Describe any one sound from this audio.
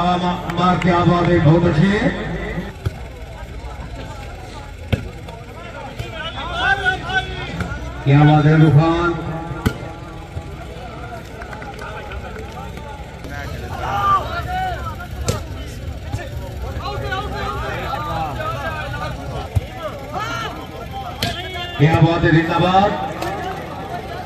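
A man commentates loudly and with animation over a loudspeaker, echoing outdoors.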